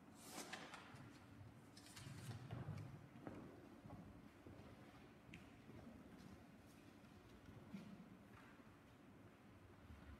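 Footsteps and faint knocks echo in a large hall.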